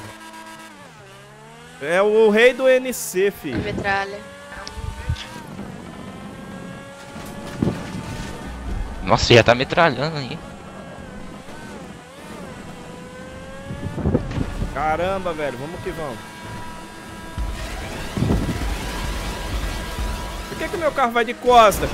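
A race car engine roars and revs steadily.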